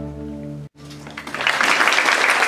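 A string orchestra holds a final chord.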